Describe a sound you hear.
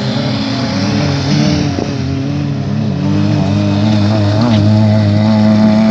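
A car engine revs hard and rises in pitch as the car races nearby.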